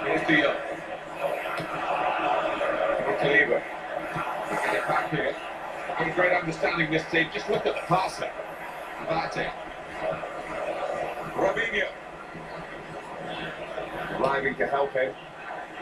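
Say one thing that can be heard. A game's stadium crowd murmurs and roars steadily through a television speaker.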